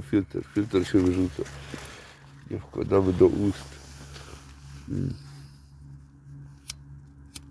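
A raccoon rustles through a plastic bag.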